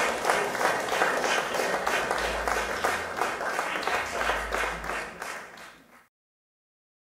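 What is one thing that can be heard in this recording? A large crowd cheers and applauds, then fades away.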